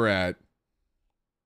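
A young man talks briefly into a close microphone.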